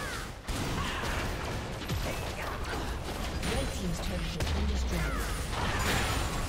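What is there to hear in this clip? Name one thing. Video game spell effects whoosh and crackle in a busy battle.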